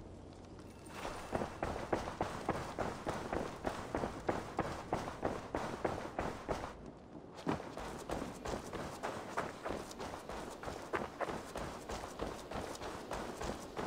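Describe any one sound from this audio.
Quick footsteps run across the ground.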